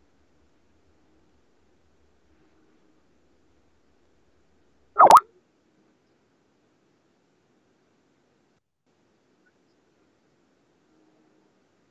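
An elderly man speaks quietly over an online call.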